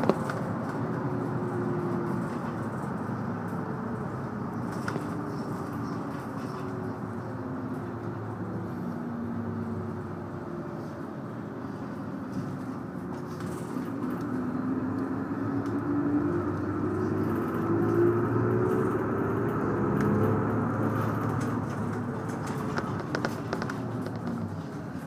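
A vehicle's engine rumbles steadily from inside, its pitch slowly rising and falling.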